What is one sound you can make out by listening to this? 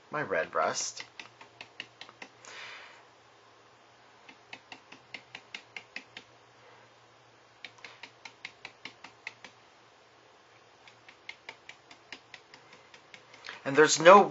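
A stiff brush taps and dabs rapidly on a hard surface.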